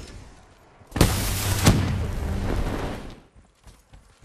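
An explosion booms and rumbles.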